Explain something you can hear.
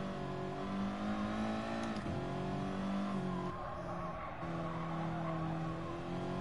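A racing car engine drones loudly, shifting pitch with each gear change.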